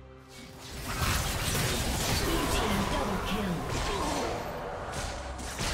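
Fantasy combat sound effects clash and burst in a game.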